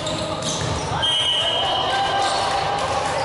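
Shoes squeak sharply on a hard floor.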